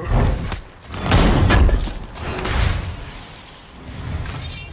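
A burst of magic whooshes and crackles.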